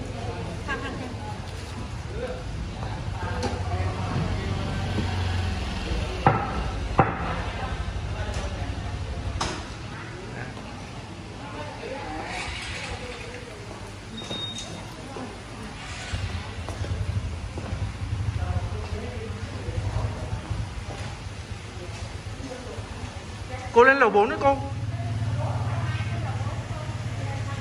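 A middle-aged woman talks cheerfully close by.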